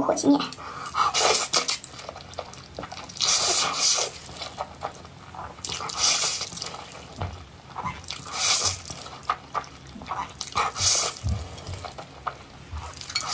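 A young woman chews wetly, close up.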